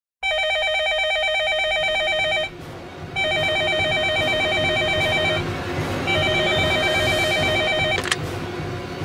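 A telephone rings loudly in repeated bursts.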